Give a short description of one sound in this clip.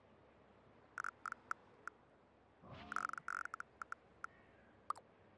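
Soft clicks sound as objects are placed.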